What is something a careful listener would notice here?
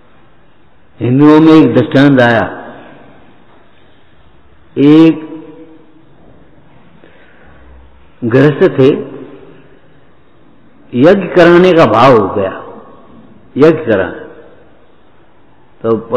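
An elderly man speaks calmly in short phrases with pauses.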